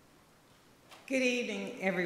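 A second woman begins speaking into a microphone.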